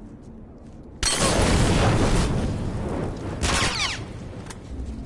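A loud explosion bursts, followed by crackling flames.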